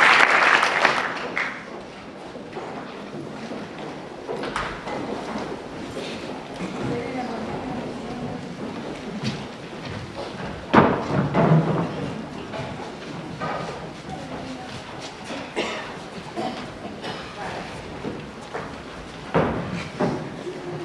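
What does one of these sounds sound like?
A crowd murmurs and calls out softly in a big echoing hall.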